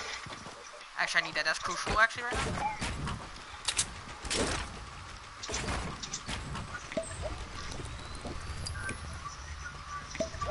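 Building pieces snap into place with quick clacks.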